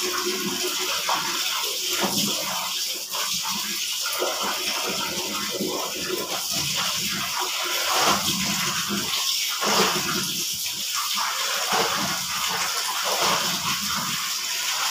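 Wet clothes slosh and splash in a basin of water.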